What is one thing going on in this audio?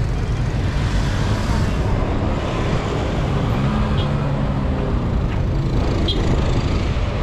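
Car and motorbike engines hum in busy traffic nearby.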